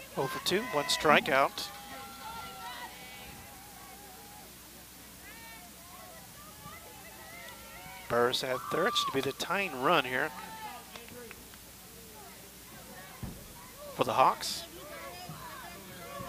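Young women shout and cheer across an outdoor field.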